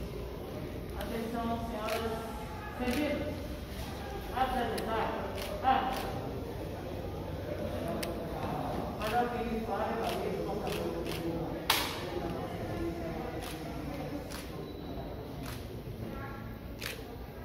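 A woman speaks commands in a room that echoes.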